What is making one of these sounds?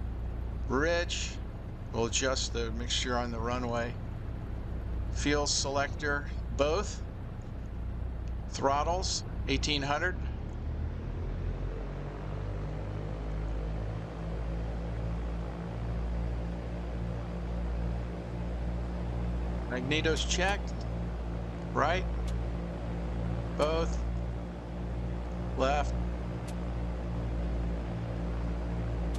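An aircraft engine hums steadily, then revs up higher.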